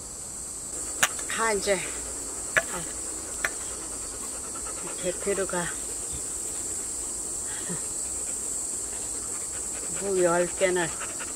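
An elderly woman speaks cheerfully close by.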